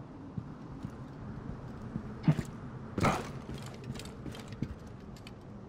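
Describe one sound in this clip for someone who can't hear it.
Footsteps thud on rock.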